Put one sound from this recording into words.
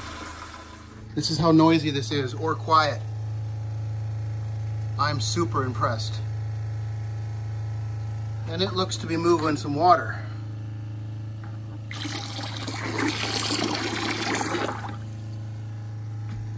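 A 12-volt diaphragm water pump hums.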